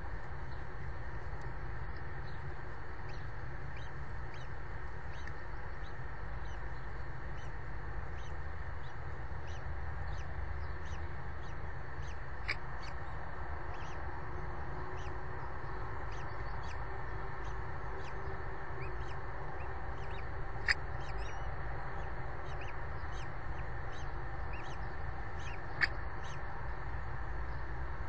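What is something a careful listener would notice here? A chick peeps faintly and repeatedly.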